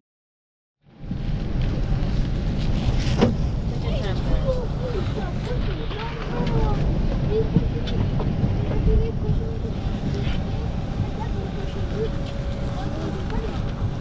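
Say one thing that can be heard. Passengers murmur and move about in an aircraft cabin.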